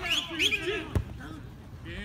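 A foot kicks a football with a dull thud.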